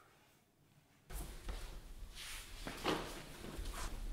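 A suitcase is lifted by its handle.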